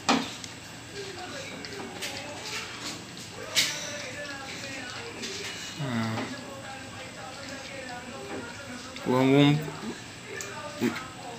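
A puppy laps and chews food from a dish close by.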